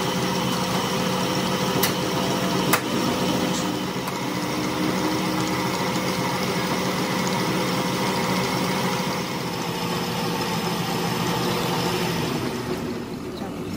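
A lathe whirs and hums steadily.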